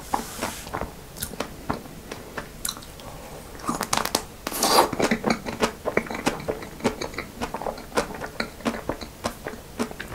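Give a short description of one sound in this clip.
A young man slurps and licks ice cream close to a microphone.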